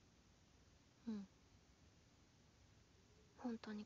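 A young man speaks softly.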